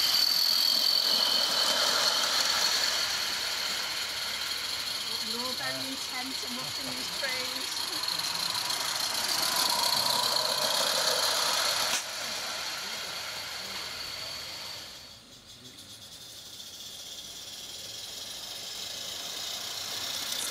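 Small model trains rumble and clatter along rails.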